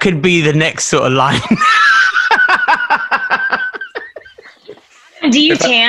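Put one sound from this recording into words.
A group of adults laugh loudly over an online call.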